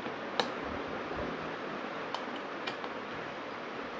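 Batteries click into a plastic charger.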